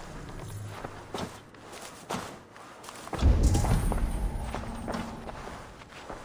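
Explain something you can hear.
Soft footsteps creak on a wooden floor.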